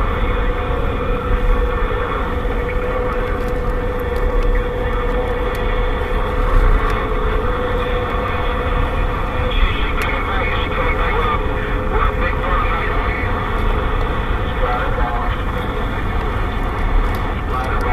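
A radio crackles and hisses with static.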